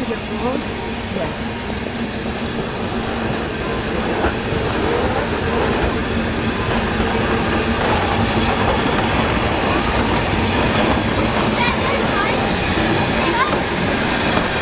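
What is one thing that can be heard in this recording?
A steam locomotive rumbles and hisses as it rolls slowly alongside.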